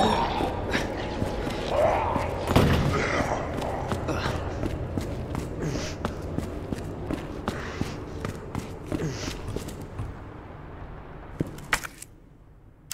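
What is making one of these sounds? Footsteps run along a hard floor.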